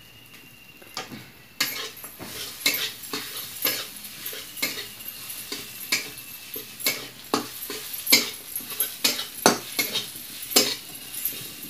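A metal spatula scrapes and clinks against a frying pan.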